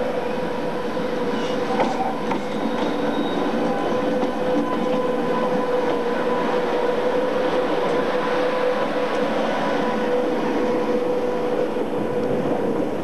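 Freight wagon wheels clatter over rail joints.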